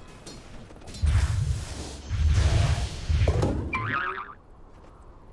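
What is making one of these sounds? Magic blasts boom and crackle in a fight.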